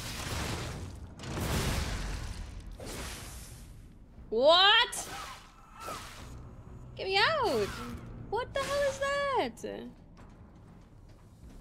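Blades whoosh and clash in a fast fight.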